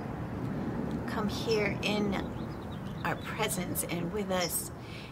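A middle-aged woman speaks slowly and emotionally, close by.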